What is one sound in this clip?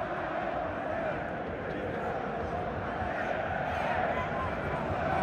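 A huge crowd chants loudly in unison in an open stadium.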